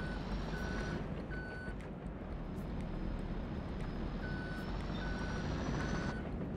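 A heavy diesel engine rumbles steadily.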